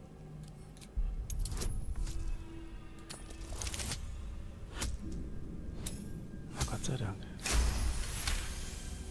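Dice rattle and tumble with a sharp clatter.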